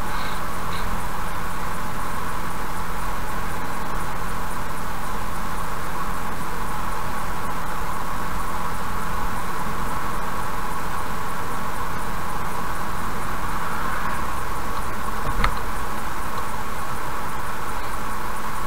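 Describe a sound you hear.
Tyres roll along the road at speed.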